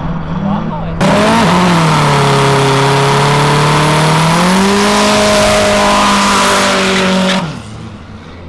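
Tyres screech and squeal as a car spins its wheels.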